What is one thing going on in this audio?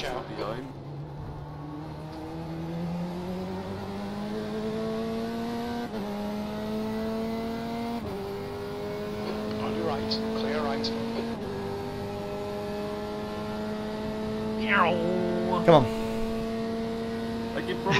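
A racing car engine drones and climbs in pitch, shifting up through the gears.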